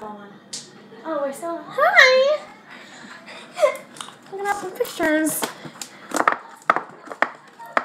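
Several young girls laugh and chatter excitedly.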